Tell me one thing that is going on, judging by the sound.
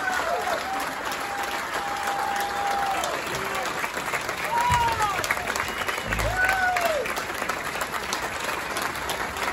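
A band plays along with the singers.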